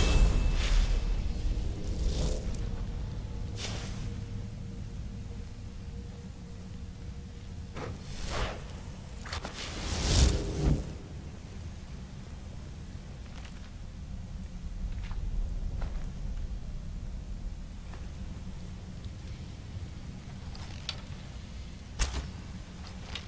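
A magical beam crackles and hisses in bursts.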